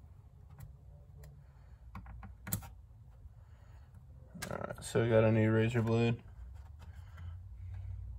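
Light plastic parts click and tap under busy hands.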